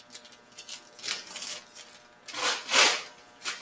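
A sheet of paper crinkles and rustles as it is peeled up.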